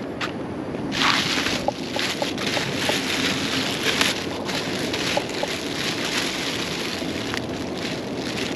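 Hands rustle and crinkle plastic trash bags.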